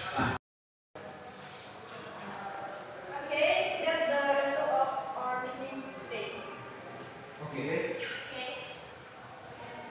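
A young woman speaks calmly to seated listeners.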